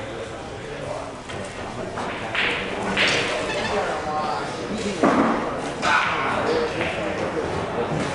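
A man talks casually nearby.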